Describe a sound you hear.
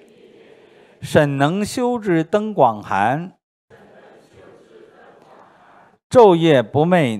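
An older man reads aloud calmly into a microphone, in short bursts with pauses.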